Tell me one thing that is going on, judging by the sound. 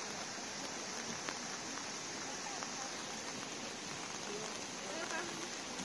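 Water trickles and splashes down over many small ledges.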